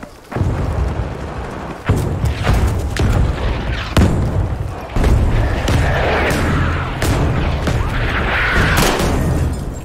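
Heavy explosions boom and rumble nearby.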